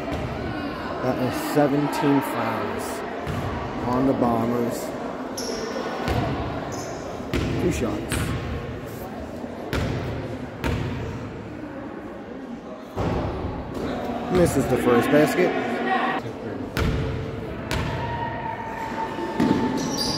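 People talk and call out nearby in a large echoing gym.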